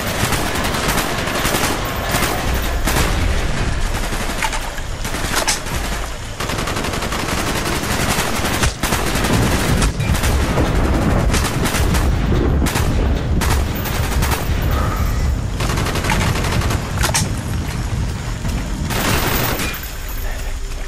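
A rifle fires rapid bursts of shots up close.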